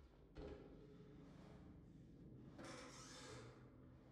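A wooden cabinet door creaks open.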